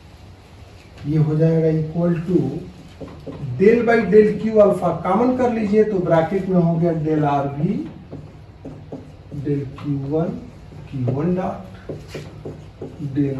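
A man speaks calmly nearby, with a slight room echo.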